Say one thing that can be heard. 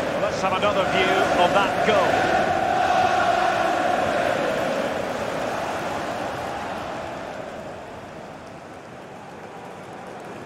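A large stadium crowd roars and cheers loudly, then slowly dies down.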